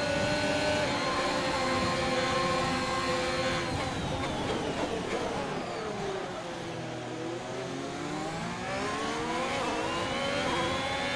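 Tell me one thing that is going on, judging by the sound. A racing car engine screams at high revs, drops low as the car slows, then climbs in pitch again.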